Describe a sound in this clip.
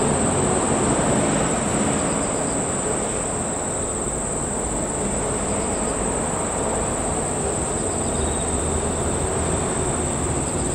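A train rumbles slowly along the tracks, drawing closer.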